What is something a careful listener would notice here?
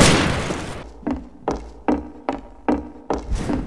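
Footsteps knock steadily on a wooden floor.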